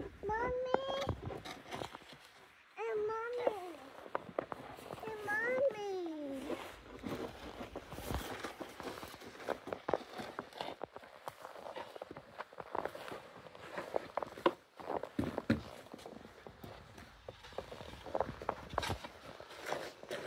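Plastic snow shovels scrape over snowy pavement.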